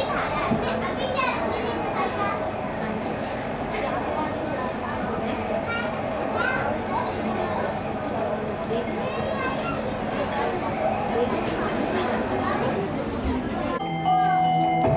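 Young children chatter and call out in a large echoing hall.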